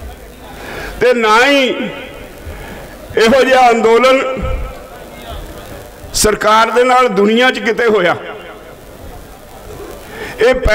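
An elderly man speaks forcefully into a microphone over a loudspeaker, in long drawn-out phrases.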